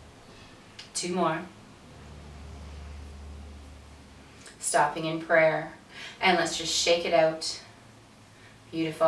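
An older woman speaks calmly and gently, close to a microphone.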